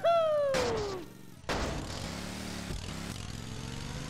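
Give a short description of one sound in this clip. A kart lands with a thud.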